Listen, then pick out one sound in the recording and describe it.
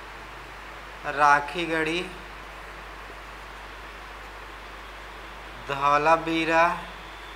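A young man speaks calmly into a nearby microphone, in short phrases.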